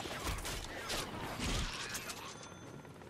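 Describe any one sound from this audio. Heavy blows and impacts thud in a brawl.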